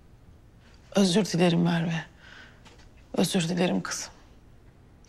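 A woman speaks softly and calmly.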